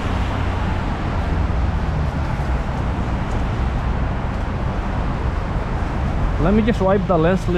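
Wind blows and rumbles steadily outdoors.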